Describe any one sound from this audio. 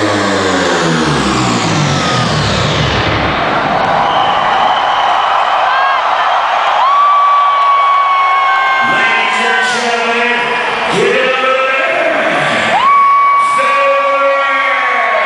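Loud electronic dance music plays through large speakers outdoors.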